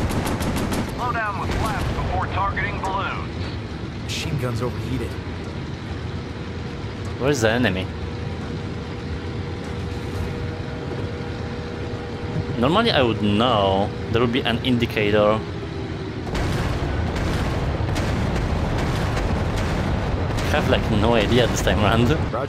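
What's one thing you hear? A young man talks with excitement close by.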